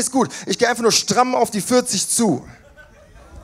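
A young man raps forcefully into a microphone, heard loud through speakers.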